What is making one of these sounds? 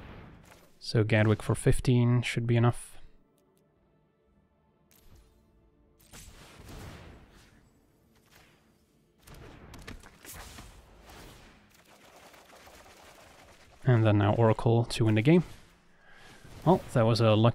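Soft magical whooshes and shimmers play as cards move in a game.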